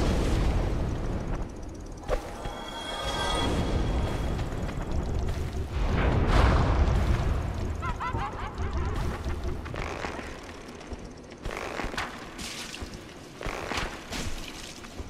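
Footsteps clatter on a stone floor.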